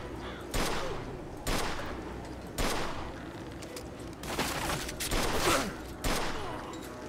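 Gunshots ring out in sharp single bursts.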